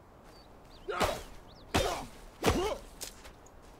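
An axe strikes wood with sharp knocks.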